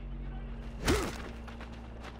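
A sword strikes in a fight.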